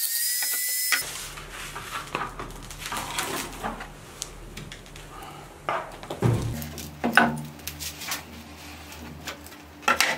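A plastic sheet crinkles and rustles as it is rolled.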